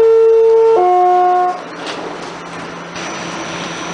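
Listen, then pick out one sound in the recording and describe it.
Train doors slide shut.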